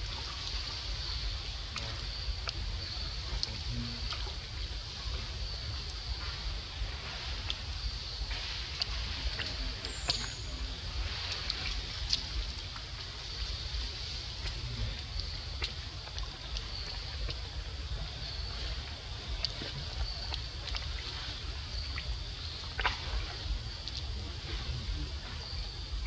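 Small paws splash and patter in shallow water.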